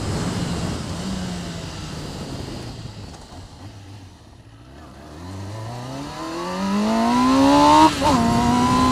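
A motorcycle engine slows down, then revs up high.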